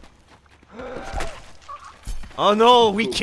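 A heavy punch lands with a thud.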